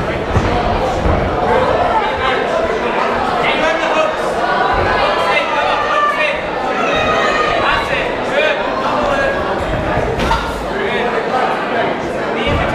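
A large crowd cheers and shouts loudly in an echoing hall.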